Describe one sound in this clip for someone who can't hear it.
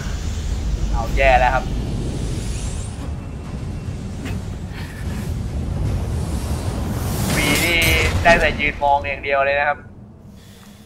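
A monstrous creature roars loudly.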